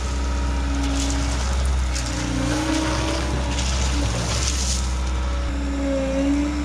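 A compact loader's engine idles with a steady low rumble.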